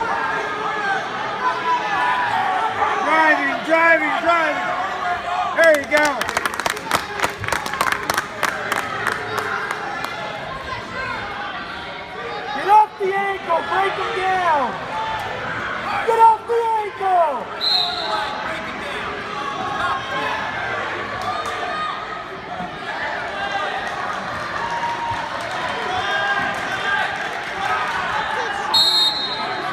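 A crowd of spectators murmurs and shouts in a large echoing gym.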